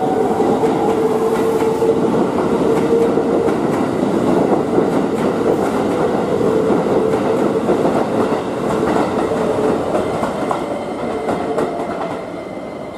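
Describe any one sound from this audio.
Train motors whine with a steady high hum.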